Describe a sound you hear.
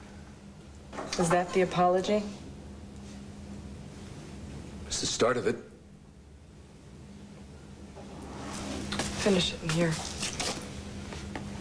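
A young woman speaks calmly and earnestly.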